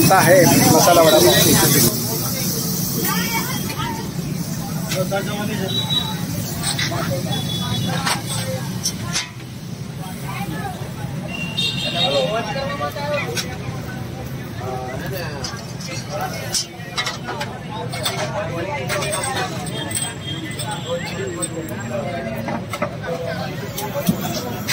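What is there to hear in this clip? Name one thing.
A metal spatula scrapes and taps on a griddle.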